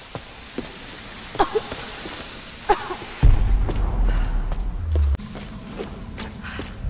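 Footsteps fall on stone.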